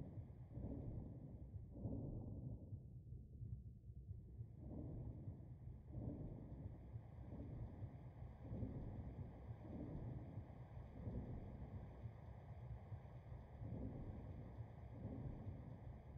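Water swishes and churns in slow, low surges.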